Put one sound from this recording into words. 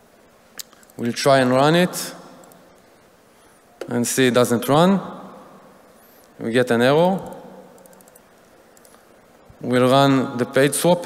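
A man speaks calmly through a microphone in a large echoing hall, in short phrases with pauses.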